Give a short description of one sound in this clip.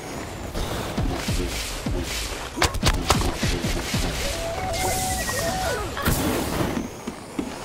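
A fiery explosion bursts with a deep roar.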